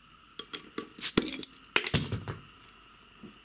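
A bottle cap pops off with a hiss of gas.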